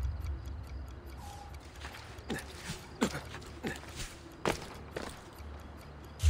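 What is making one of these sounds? Footsteps and hands scrape and knock on stone as a man climbs.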